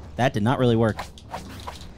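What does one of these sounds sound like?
A sword slashes through the air with a swish.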